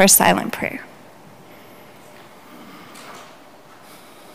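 A woman speaks calmly into a microphone in an echoing room.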